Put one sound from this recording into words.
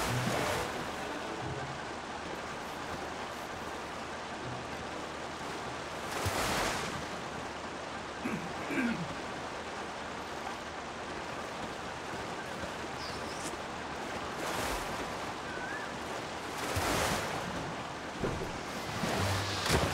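Water laps and splashes steadily against a raft.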